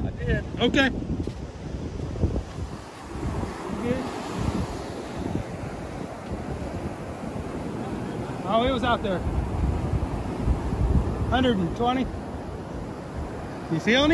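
Small waves wash steadily onto a sandy shore.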